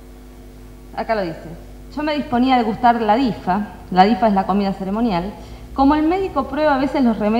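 A middle-aged woman reads aloud calmly into a microphone.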